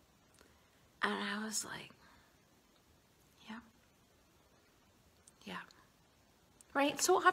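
A woman speaks calmly and close up, in short phrases with pauses.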